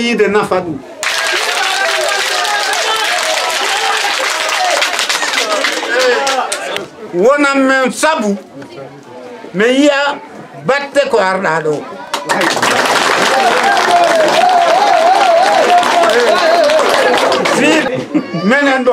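A crowd claps and cheers.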